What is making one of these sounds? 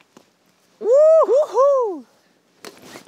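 A young man whoops out loud outdoors.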